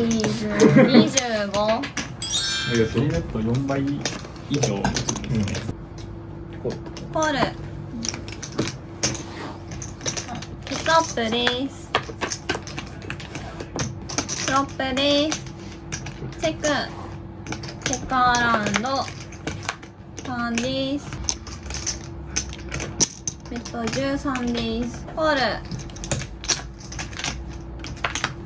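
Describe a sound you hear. Poker chips clack together on a table.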